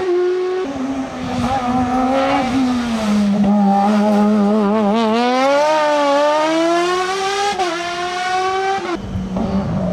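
A racing car engine roars close by, revving high and dropping with each gear change as it passes.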